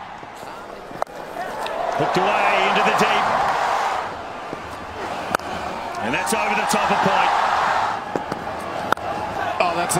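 A cricket bat strikes a ball with a sharp crack.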